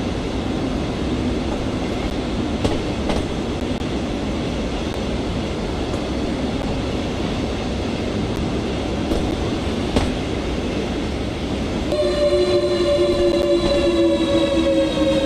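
An electric train rumbles steadily along the rails.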